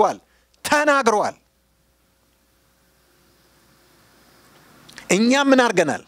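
A middle-aged man preaches with animation into a microphone, pausing between bursts of speech.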